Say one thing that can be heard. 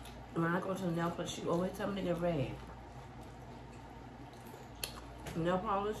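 Crunchy food crunches as it is chewed.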